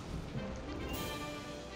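A short chime of rising tones plays.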